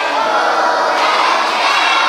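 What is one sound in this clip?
A woman claps her hands.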